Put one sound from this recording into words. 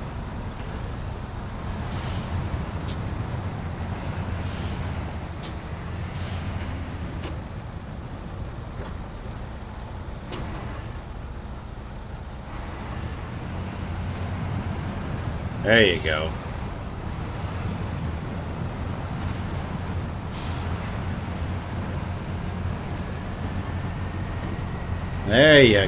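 A heavy truck engine rumbles and strains.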